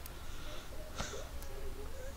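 A short click sounds.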